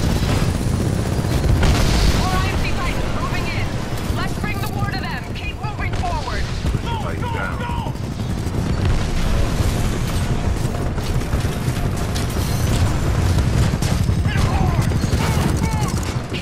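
A heavy automatic rifle fires.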